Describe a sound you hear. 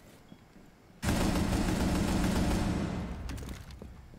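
Gunfire rattles in a loud burst.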